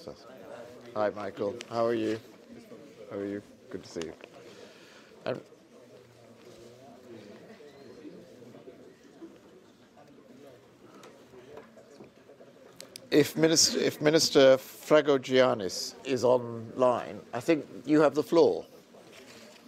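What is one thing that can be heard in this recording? An older man speaks calmly through a microphone in a large hall.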